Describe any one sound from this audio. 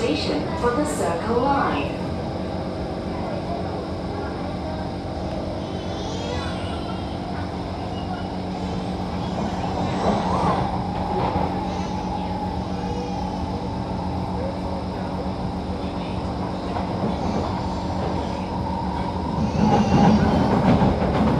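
Train wheels clatter over the rails.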